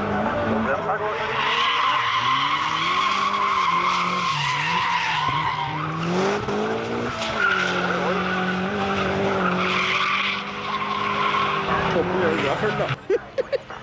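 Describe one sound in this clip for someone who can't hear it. Tyres squeal on asphalt as a car drifts.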